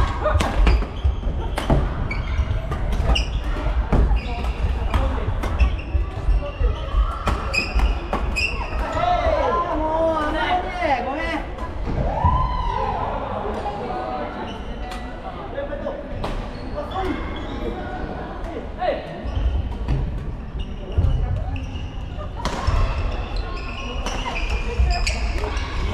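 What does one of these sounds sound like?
Shuttlecocks are struck by rackets with sharp pops across a large echoing hall.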